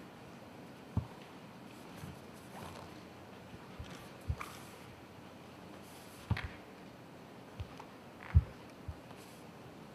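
Bare feet thump and stamp on a mat.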